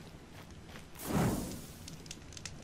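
A fire flares up with a loud whoosh.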